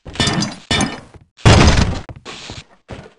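A metal wrench clangs against something hard.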